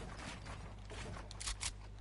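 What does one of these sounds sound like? Building pieces snap into place with quick clattering knocks in a video game.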